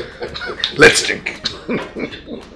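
An elderly man speaks cheerfully nearby.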